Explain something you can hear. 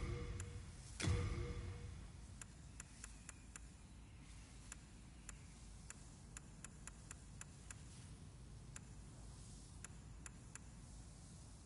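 Soft menu clicks tick as a selection moves up and down.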